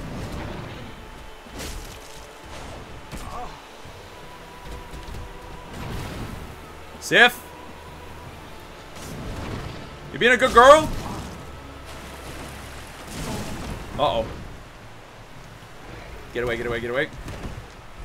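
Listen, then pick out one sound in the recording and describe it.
A great sword whooshes through the air.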